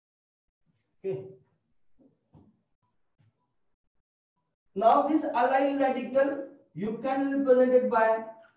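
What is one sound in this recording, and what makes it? A man speaks calmly in a lecturing tone, close by.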